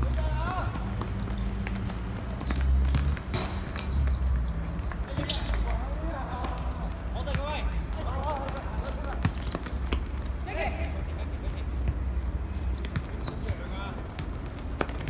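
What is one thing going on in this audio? Players call out and shout to each other at a distance.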